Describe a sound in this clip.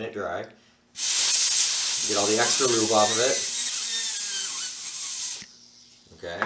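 An aerosol can sprays with a loud, steady hiss.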